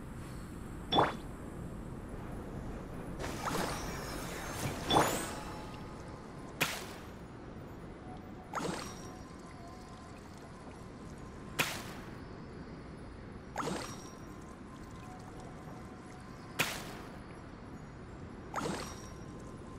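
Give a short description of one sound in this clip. Magical spell effects burst with sharp whooshing chimes every couple of seconds.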